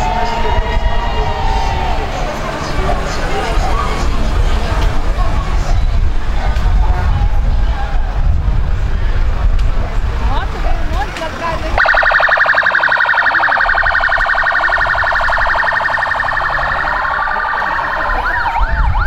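Sirens wail from the passing vehicles.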